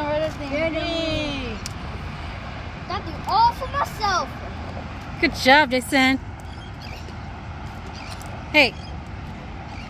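Young children talk and call out excitedly close by.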